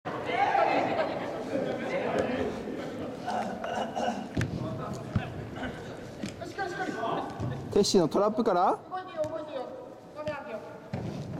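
Children shout and call out to each other in a large echoing hall.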